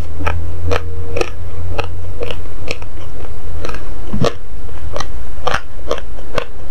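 Fingers snap and click softly close to a microphone, in a steady rhythm.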